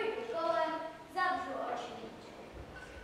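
A young girl sings out briefly nearby.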